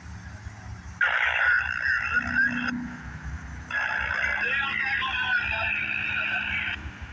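A train horn blows in two long blasts.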